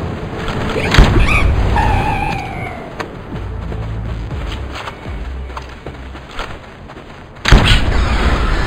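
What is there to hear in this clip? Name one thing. A gun fires loud shots.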